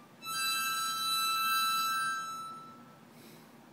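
A young boy blows a toy whistle with a steady high tone.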